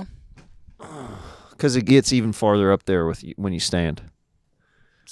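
A young man speaks close into a microphone with animation.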